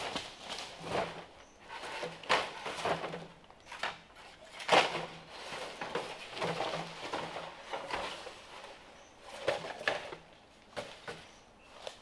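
Bamboo poles knock and clatter against each other.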